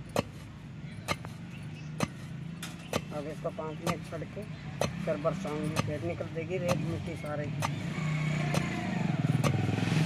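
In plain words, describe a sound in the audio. A woman pounds a pestle into a mortar with dull, steady thuds.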